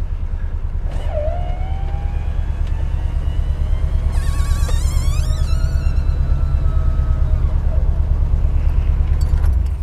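An electric motor whines as a convertible roof folds down.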